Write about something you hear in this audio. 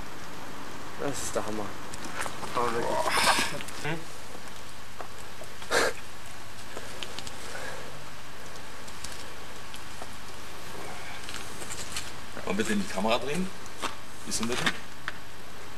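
A young man speaks casually nearby.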